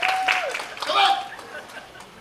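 Young dancers shout together in calls.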